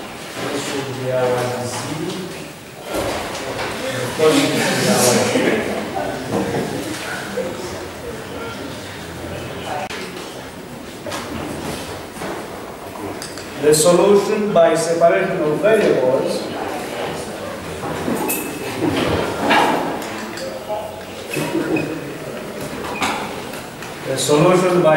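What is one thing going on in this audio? A man lectures calmly in a room with a slight echo.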